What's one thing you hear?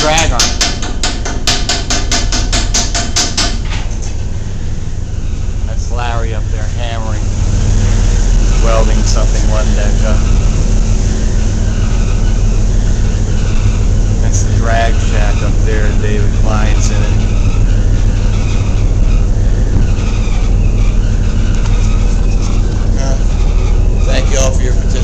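Heavy dredge machinery rumbles low and steadily.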